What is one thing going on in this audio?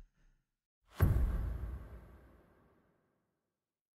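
A deep whoosh booms and fades away.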